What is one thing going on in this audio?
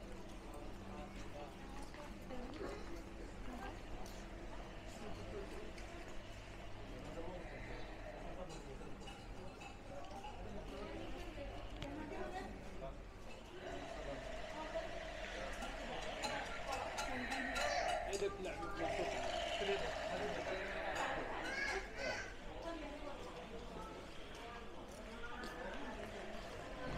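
A crowd of men and women murmurs and talks nearby.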